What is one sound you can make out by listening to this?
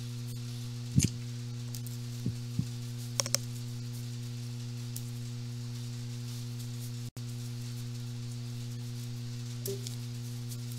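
Playing cards are shuffled and tapped softly by hand.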